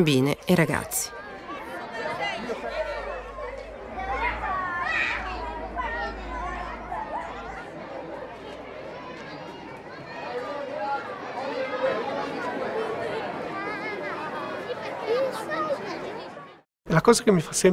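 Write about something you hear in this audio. A crowd of children chatters and calls out outdoors.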